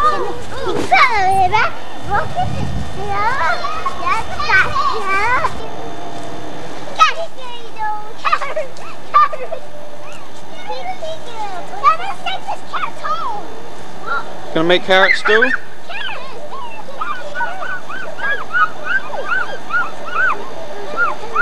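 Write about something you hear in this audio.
Young girls chatter and squeal nearby outdoors.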